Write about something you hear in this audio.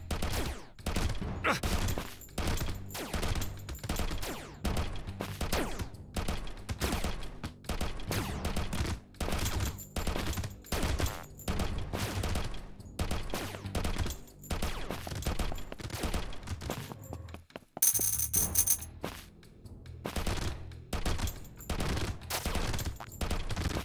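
Game music plays with a steady beat.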